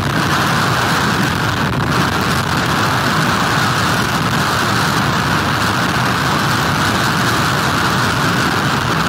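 Strong wind roars steadily outdoors.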